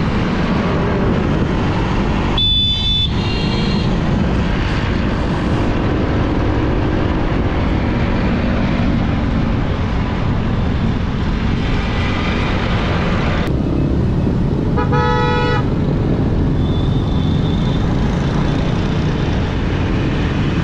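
Wind rushes over the microphone at riding speed.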